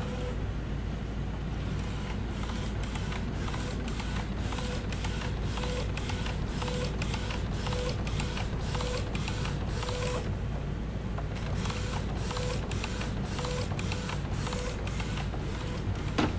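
A printer's print head carriage whirs back and forth in rapid clicking passes.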